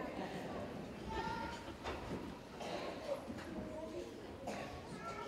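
A large choir of children sings together, heard from a distance in a large echoing hall.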